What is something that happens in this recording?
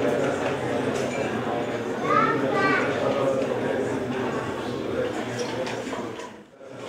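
A crowd of people murmurs and talks quietly nearby.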